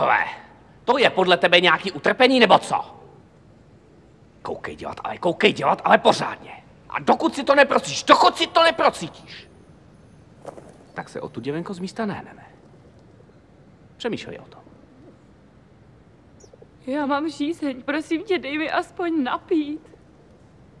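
A young woman speaks pleadingly and upset, close by.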